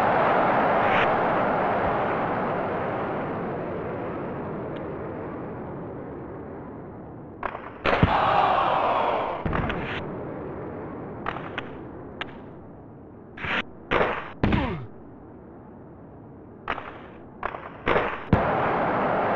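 A hockey stick smacks a puck with a sharp click.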